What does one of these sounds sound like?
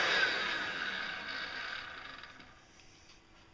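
A vacuum motor whirs and winds down.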